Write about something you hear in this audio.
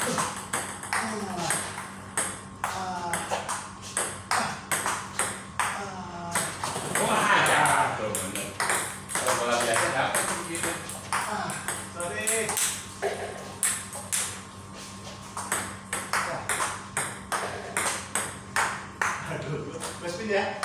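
A ping pong ball clicks rapidly back and forth on a table and paddles.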